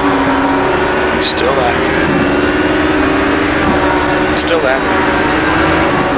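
A race car engine accelerates at high revs and shifts up through the gears.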